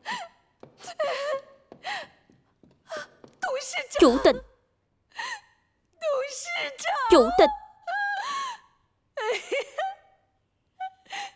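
A middle-aged woman calls out and pleads with emotion, close by.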